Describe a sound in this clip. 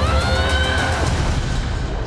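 Thunder crashes during a storm.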